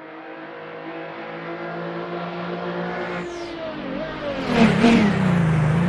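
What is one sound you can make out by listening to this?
A racing car engine approaches, growing louder, then roars past close by.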